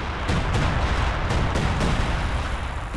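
Rapid gunfire crackles in a battle.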